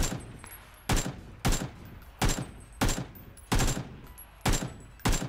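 A rifle fires single shots.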